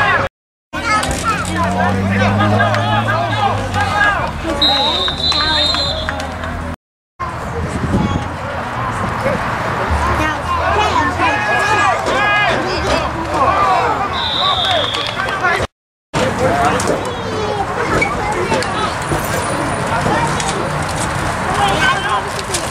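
A crowd of men and women talks and shouts nearby outdoors.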